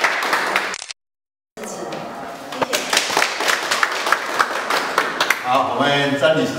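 A crowd applauds, clapping in a room.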